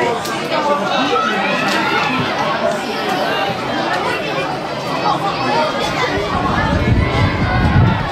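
Children shout to each other while playing football.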